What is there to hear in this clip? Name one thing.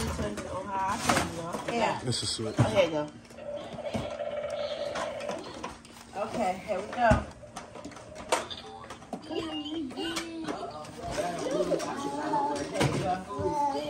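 A small girl babbles and squeals.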